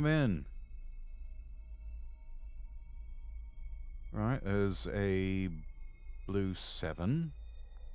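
A young man talks expressively into a microphone.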